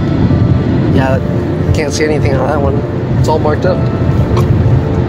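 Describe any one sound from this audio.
A man speaks briefly inside a moving car.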